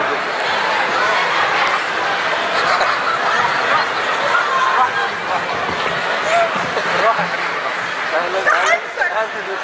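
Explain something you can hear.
A large crowd murmurs and applauds in a big echoing hall.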